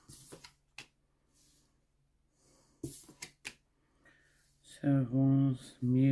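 A card is laid down on a wooden table with a soft tap.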